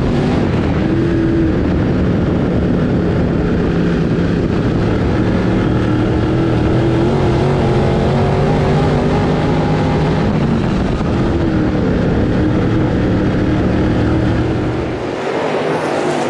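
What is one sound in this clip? A race car engine roars loudly up close, rising and falling as it revs.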